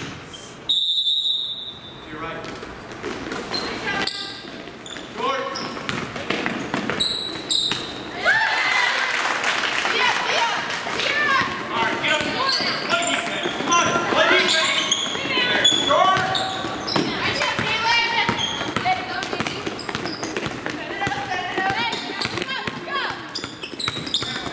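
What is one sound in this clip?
A crowd in an echoing gym cheers and shouts.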